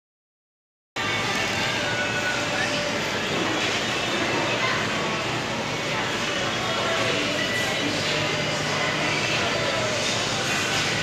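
A crowd of people murmurs and chatters indoors.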